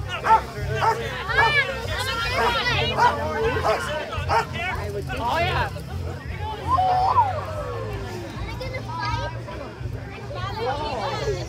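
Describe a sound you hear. Several women chatter nearby outdoors.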